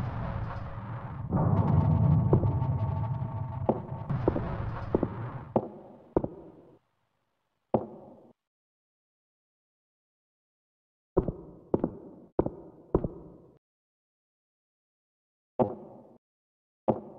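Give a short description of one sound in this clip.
Footsteps thud on hard ground, each step ringing briefly.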